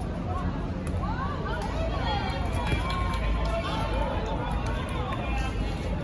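A ball bounces on a hard court.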